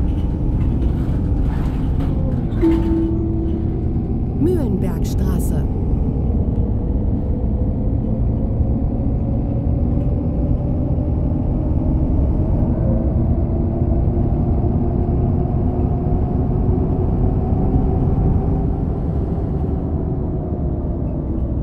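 A bus engine rumbles and hums steadily as the bus drives along.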